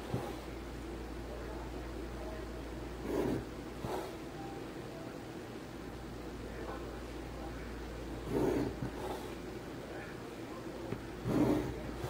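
A pencil scratches along paper.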